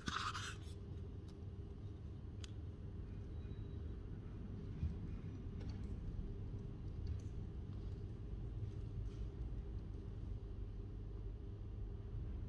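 Paper pages of a book rustle softly under a hand.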